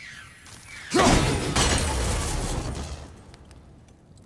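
A magical burst crackles loudly and slowly fades.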